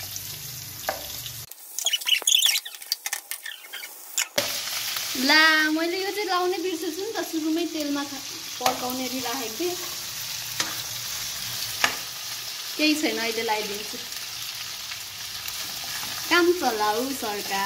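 A spoon scrapes against a pan.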